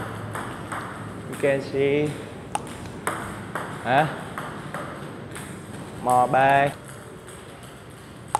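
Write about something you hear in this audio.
A table tennis ball taps on a paddle and the table.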